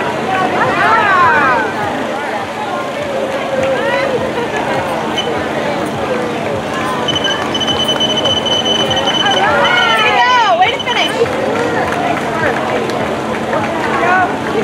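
A crowd of spectators cheers and chatters outdoors.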